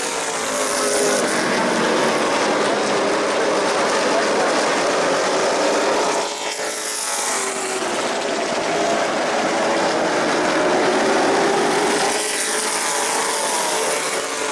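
A pack of race car engines roars loudly, rising and falling in pitch.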